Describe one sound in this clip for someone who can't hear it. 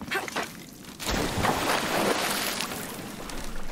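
Water splashes as a swimmer wades in.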